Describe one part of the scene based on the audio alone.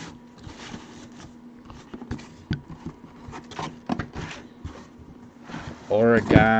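Cardboard packaging rustles and crinkles as hands handle it.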